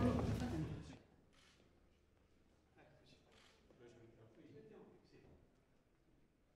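Footsteps click on a hard floor in a quiet room.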